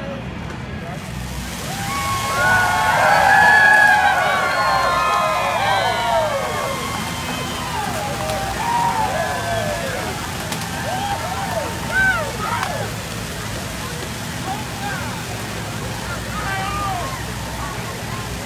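Smoke cannons hiss loudly with a steady rush.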